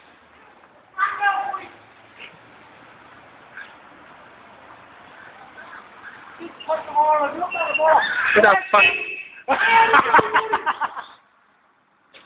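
A young man shouts with excitement close by.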